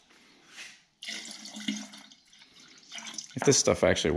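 Liquid pours and splashes into a plastic sprayer tank.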